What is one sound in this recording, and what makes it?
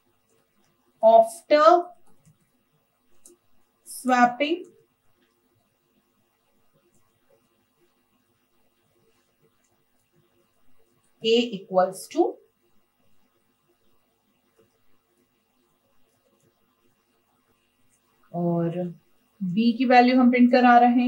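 A woman speaks calmly and slowly, close to a microphone, in short phrases.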